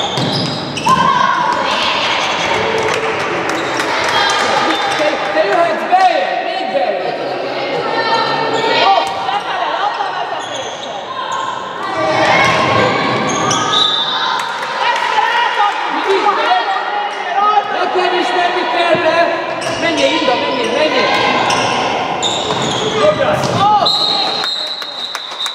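Spectators close by shout and cheer loudly in an echoing hall.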